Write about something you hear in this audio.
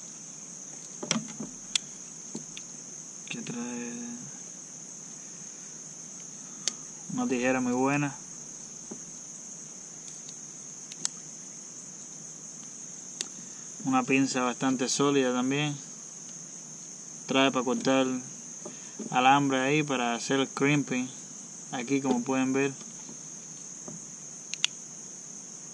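Metal tool parts click as they fold open and shut.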